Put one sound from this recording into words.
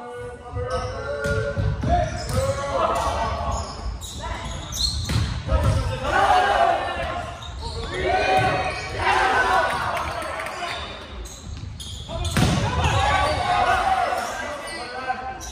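Young players shout and call to each other in a large echoing gym.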